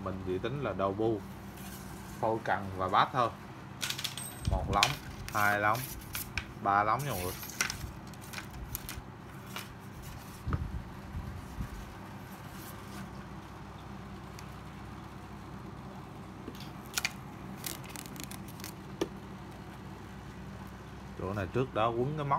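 Metal and plastic rod parts click and knock as they are handled.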